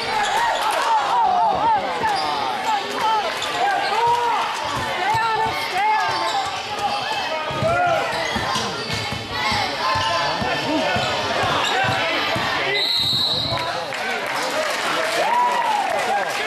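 A crowd cheers and shouts loudly in a large echoing gym.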